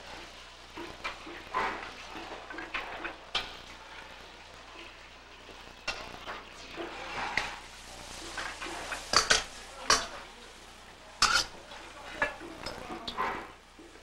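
Metal utensils clink against a dish.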